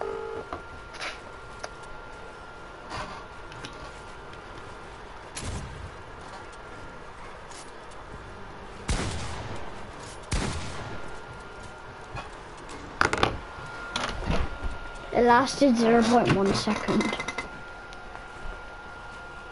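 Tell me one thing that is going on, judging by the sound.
Wooden building pieces snap into place with sharp knocks.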